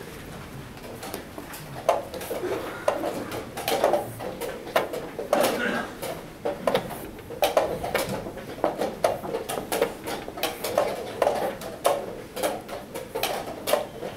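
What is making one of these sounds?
Chess clock buttons are slapped in quick succession.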